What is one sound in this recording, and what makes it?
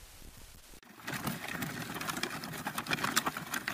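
Boots crunch on a gravel path.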